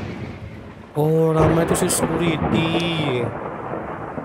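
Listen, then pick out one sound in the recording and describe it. A man speaks calmly through a game's speakers.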